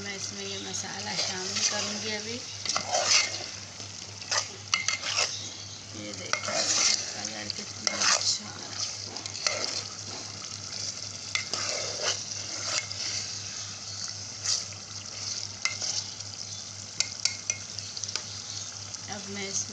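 A metal spoon scrapes and clinks against a pot.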